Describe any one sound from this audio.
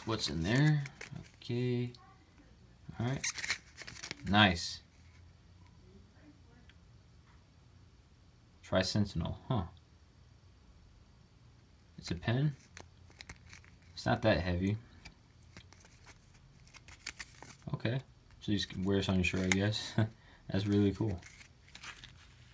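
A plastic sleeve crinkles softly as a hand handles it.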